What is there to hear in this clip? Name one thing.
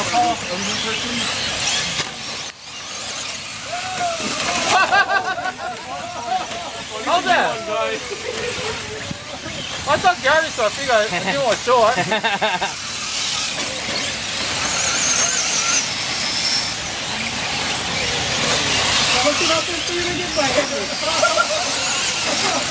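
Small electric model cars whine loudly as they race past.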